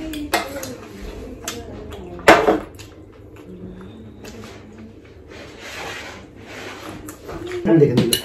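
A spoon clinks against a plate.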